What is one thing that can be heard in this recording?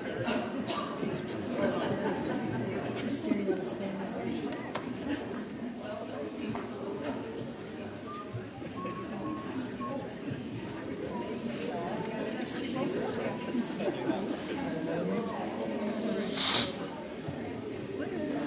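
A congregation of men and women chatters and mingles in a large hall.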